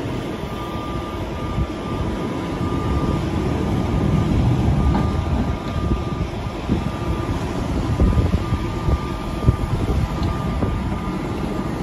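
Silage rustles and falls as a loader's grab tears it loose.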